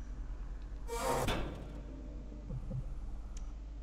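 An elevator door slides shut.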